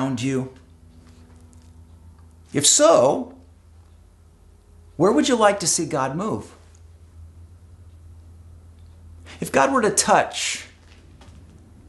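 A middle-aged man speaks calmly and expressively close to a microphone, in short bursts with pauses.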